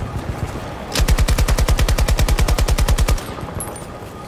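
A machine gun fires in a rapid burst.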